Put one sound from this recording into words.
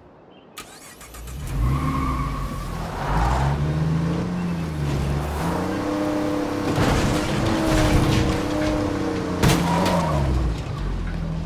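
A truck engine rumbles and revs as the vehicle drives.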